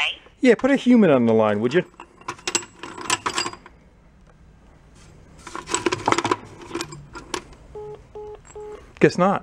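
Metal parts clink and rattle as a hand stirs them in a metal bowl.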